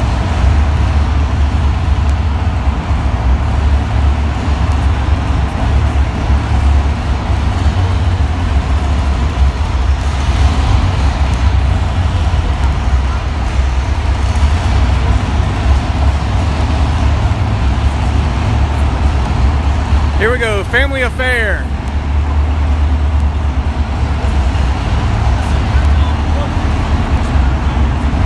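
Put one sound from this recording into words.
A truck engine roars steadily in a large echoing hall.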